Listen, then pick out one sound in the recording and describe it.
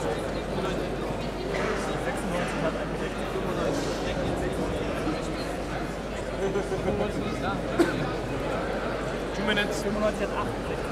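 A crowd of men and women murmurs and chatters.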